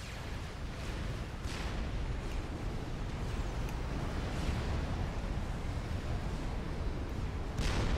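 Explosions boom in a distant battle.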